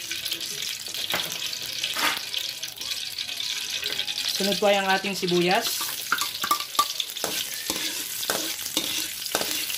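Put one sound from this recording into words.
Hot oil sizzles steadily in a pan.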